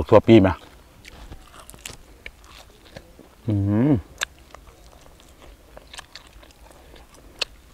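A man chews and crunches small bones of grilled meat.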